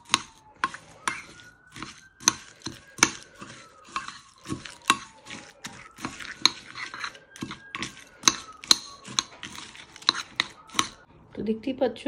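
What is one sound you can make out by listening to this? A metal spoon clinks and scrapes against a ceramic bowl.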